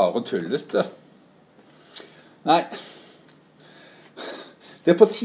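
A middle-aged man talks calmly and close to the microphone, in short bursts with pauses.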